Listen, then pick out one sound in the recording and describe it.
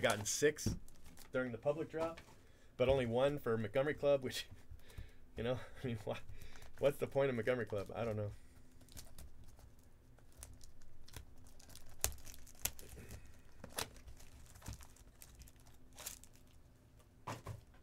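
Cardboard boxes tap and knock against each other.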